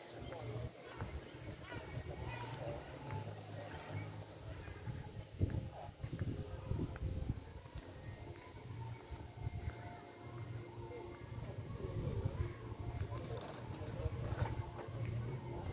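Footsteps walk steadily along a street outdoors.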